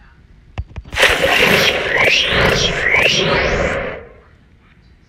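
A cartoon piñata bursts open with a bright, sparkling jingle.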